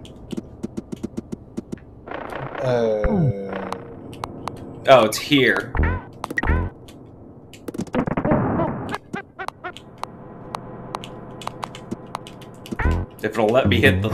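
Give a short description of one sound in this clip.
Video game sound effects chime and clatter.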